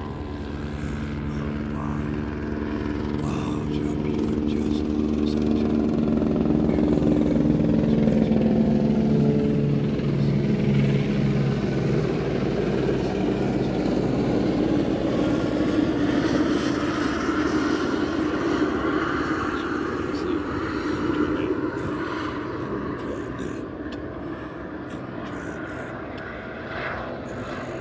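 An aircraft engine drones overhead, growing louder and then slowly fading away.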